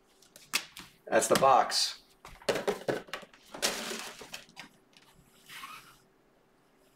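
A foil wrapper crinkles as hands tear it open.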